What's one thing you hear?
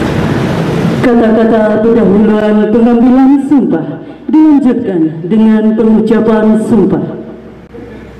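A man calls out loudly through a loudspeaker.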